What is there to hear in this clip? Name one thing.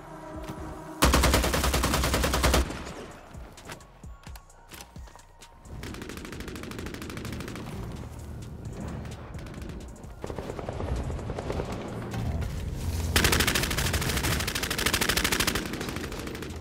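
A rifle fires rapid bursts of shots, loud and close.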